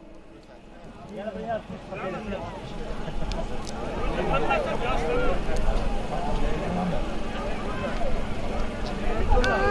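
A large crowd of men talk and shout outdoors.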